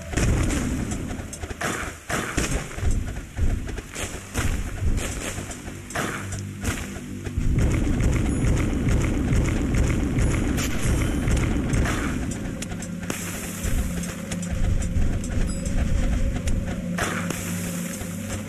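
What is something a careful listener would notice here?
Towers fire with rapid zapping and crackling shots.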